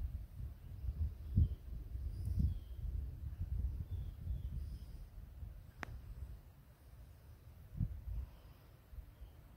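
Wind rumbles and gusts against the microphone outdoors.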